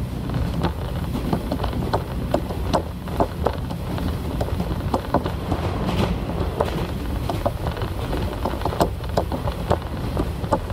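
A diesel railcar rumbles along at speed, heard from inside.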